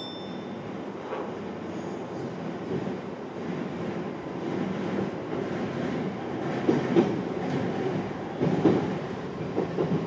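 A train rumbles steadily along the tracks, growing louder.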